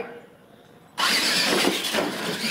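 A small electric motor whirs as a toy truck drives across a hard floor.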